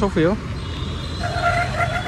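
A motor scooter rides past.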